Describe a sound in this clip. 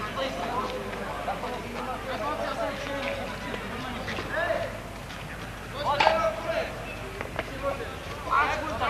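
Several men talk and call out to one another outdoors.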